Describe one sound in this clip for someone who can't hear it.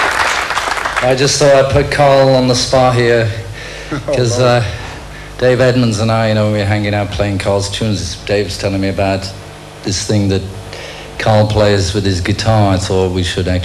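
A middle-aged man speaks calmly into a microphone in a large hall.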